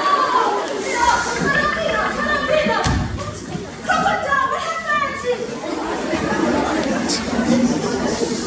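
A woman speaks loudly on stage in a large echoing hall.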